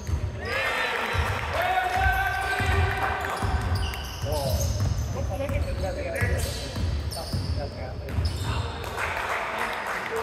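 Sneakers squeak sharply on a hardwood court in an echoing gym.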